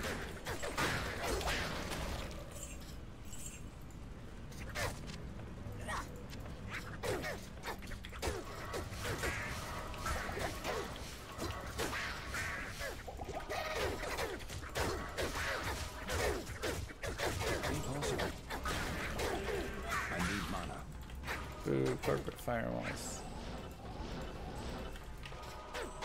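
Game spells crackle and burst with fire.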